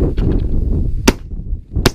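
A shotgun fires a single loud shot.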